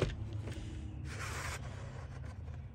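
A tape cassette slides out of a cardboard sleeve with a soft scrape.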